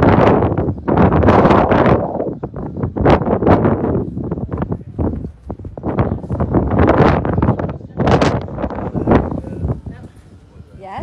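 Wind gusts roar against the microphone outdoors.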